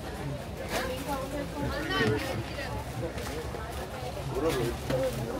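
Several men and women talk at once nearby.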